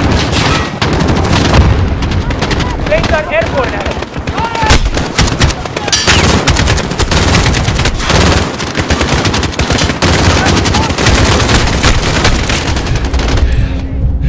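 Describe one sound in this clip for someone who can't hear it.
Rifle gunfire rattles in rapid, loud bursts.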